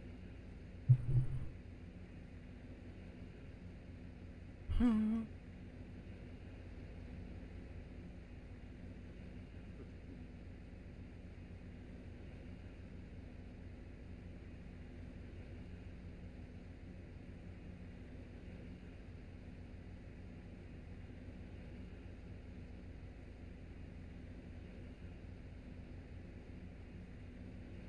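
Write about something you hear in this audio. A combine harvester engine hums steadily and low.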